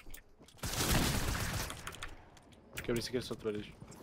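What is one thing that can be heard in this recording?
Gunshots from a video game crack in short bursts.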